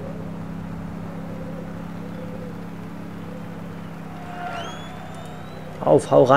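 A motorbike engine hums steadily nearby.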